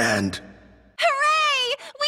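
A short jingle plays for victory.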